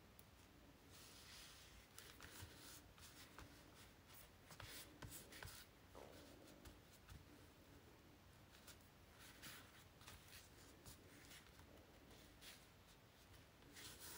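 Hands rub and smooth down paper with a soft rustle.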